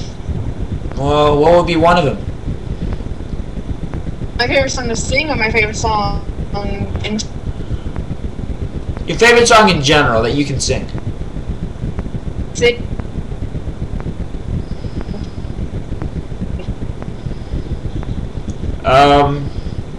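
A young man speaks calmly and close up, in short bursts with pauses.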